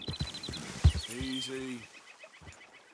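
A horse snorts and whinnies nearby.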